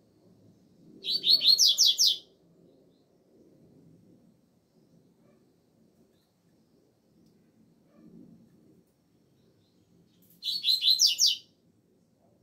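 A caged double-collared seedeater sings short, rapid trilling phrases.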